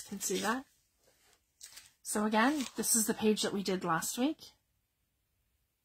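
A stiff paper page flips over with a soft rustle.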